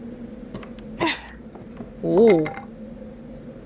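A wooden panel knocks and scrapes as it is pried loose.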